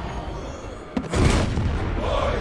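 A body slams onto a mat with a thud.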